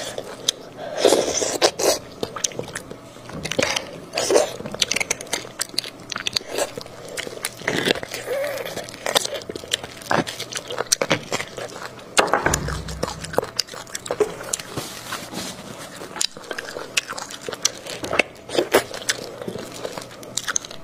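Sticky food squelches as gloved hands pull it apart.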